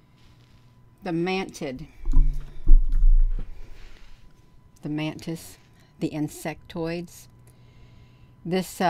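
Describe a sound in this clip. An older woman speaks calmly into a close microphone, pausing between phrases.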